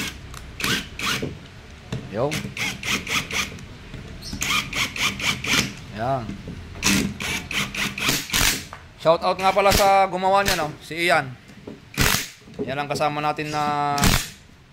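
An impact wrench rattles in short bursts.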